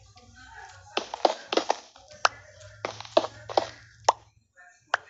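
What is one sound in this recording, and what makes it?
A pickaxe knocks rapidly against stone blocks.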